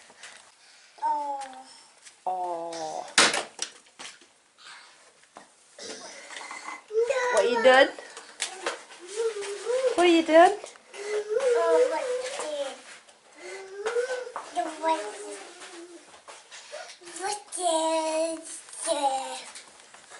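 A toddler babbles and squeals.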